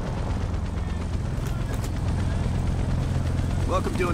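A helicopter rotor thumps overhead.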